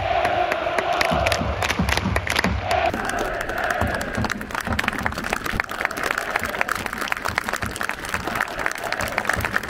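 Spectators clap their hands steadily nearby.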